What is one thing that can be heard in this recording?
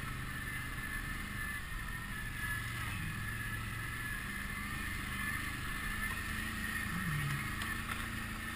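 An engine drones steadily and changes pitch as it rides over rough ground.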